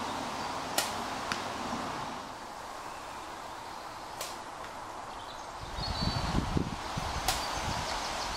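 A compound bow releases an arrow with a sharp snap.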